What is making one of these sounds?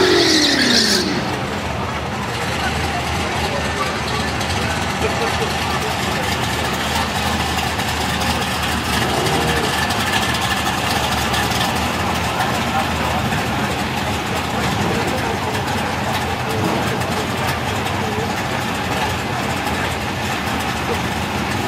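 Car engines rumble steadily nearby.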